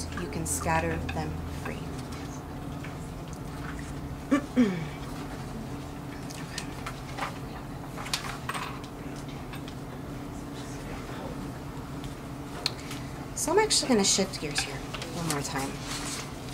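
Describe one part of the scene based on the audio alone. Paper rustles as a woman handles sheets.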